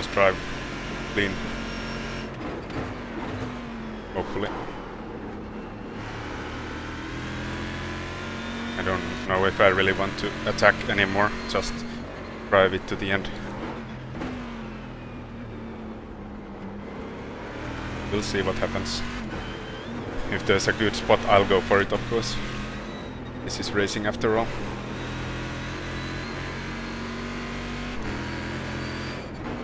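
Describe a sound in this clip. A racing car engine roars, rising and falling in pitch as it revs and shifts gears.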